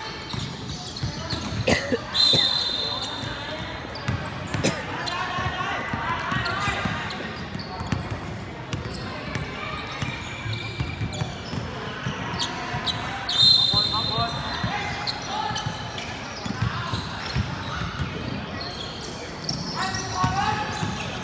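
A basketball thuds on the floor.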